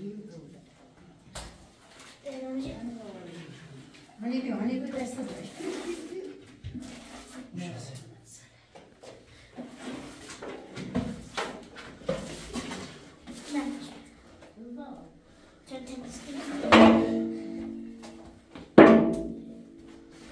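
A man scrapes plaster off a wall.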